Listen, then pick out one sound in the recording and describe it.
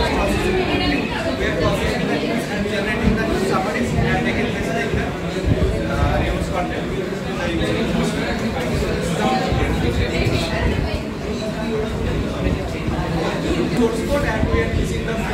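A young man speaks calmly to a room, with a slight echo.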